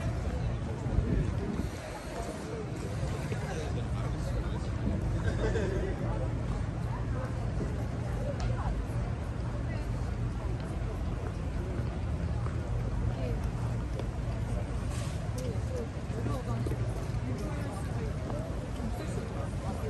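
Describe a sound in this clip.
Many people chatter at a distance outdoors.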